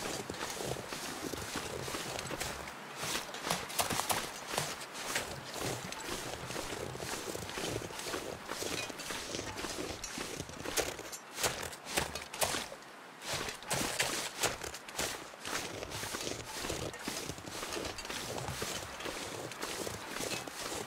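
Footsteps crunch through snow.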